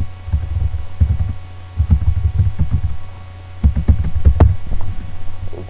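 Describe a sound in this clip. Keys on a keyboard click and tap in quick bursts.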